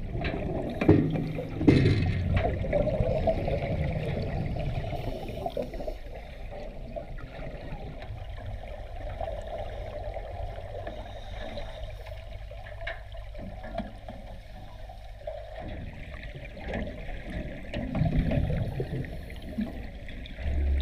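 Water rushes and bubbles, muffled as if heard underwater.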